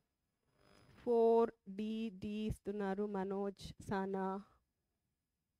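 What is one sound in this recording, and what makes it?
A woman speaks with animation into a headset microphone.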